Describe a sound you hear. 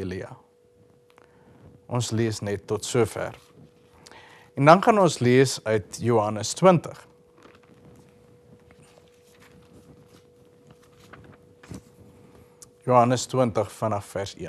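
A man reads aloud calmly and expressively, close by.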